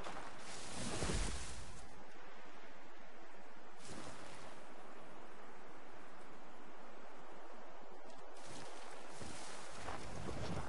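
Leaves rustle as someone pushes through dense bushes.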